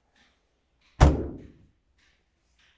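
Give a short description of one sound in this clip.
A metal compartment door bangs shut.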